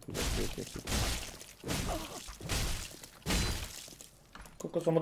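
Heavy weapon blows thud and clang.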